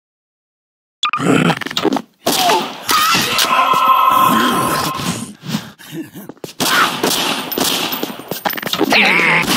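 A pistol fires repeated shots.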